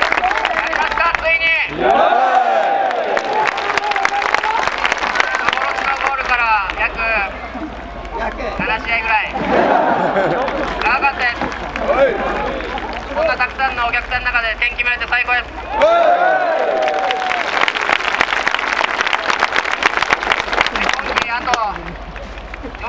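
A young man speaks loudly through a handheld megaphone outdoors.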